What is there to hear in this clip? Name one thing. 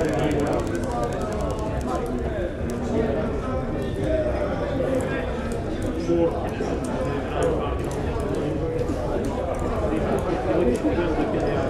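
A crowd of men and women chatter and murmur indoors.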